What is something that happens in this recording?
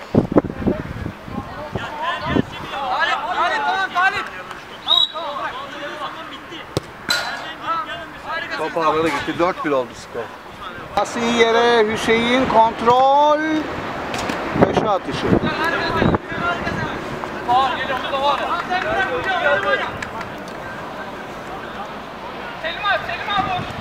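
Men shout to each other outdoors during a football match.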